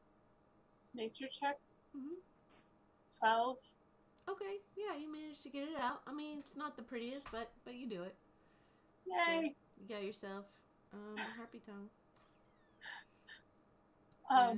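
A second woman speaks and laughs over an online call.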